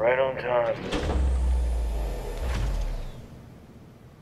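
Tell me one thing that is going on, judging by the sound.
A hover chair hums with a low rumble as it glides past.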